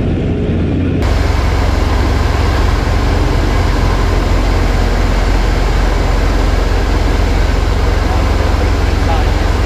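Propeller engines roar loudly inside a cockpit.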